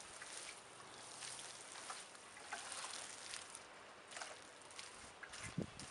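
Water pours from a watering can and splashes onto soil.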